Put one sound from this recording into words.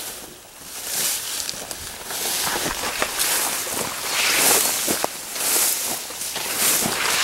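Leaves rustle in the wind.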